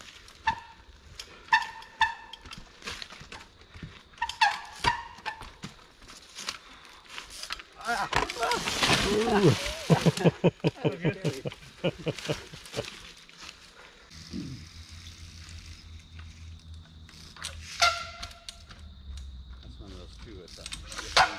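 Bicycle tyres knock and scrape on rock.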